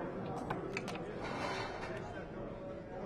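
Dice rattle in a cup.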